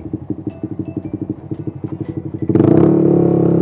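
A motorcycle engine idles with a steady, rumbling throb.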